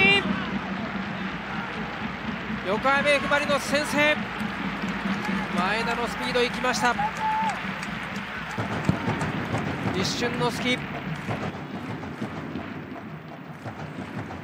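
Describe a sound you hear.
A large stadium crowd cheers and claps.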